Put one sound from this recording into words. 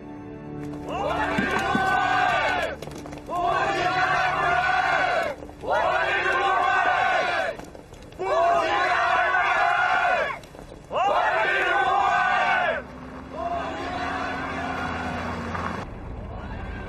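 A crowd of young women and men chants slogans loudly in unison.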